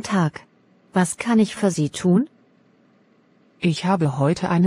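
A young woman asks a question in a friendly voice.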